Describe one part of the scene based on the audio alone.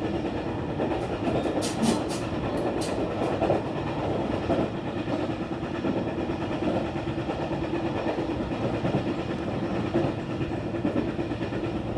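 A vehicle drives steadily along a road, its engine and tyres rumbling from inside.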